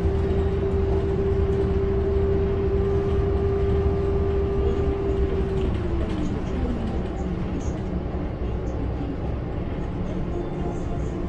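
A bus engine hums loudly from inside, its whine dropping in pitch as the bus slows.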